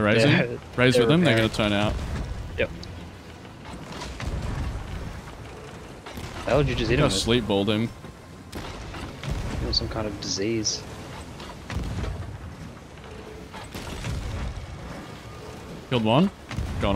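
Rough sea waves slosh and crash.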